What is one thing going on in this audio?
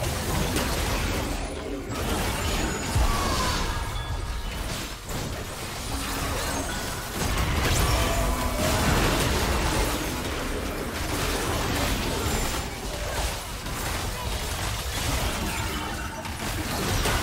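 Game spell effects whoosh and crackle in a fight.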